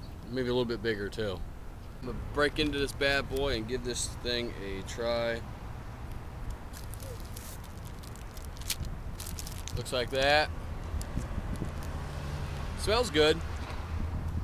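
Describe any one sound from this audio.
A man speaks casually, close by, outdoors.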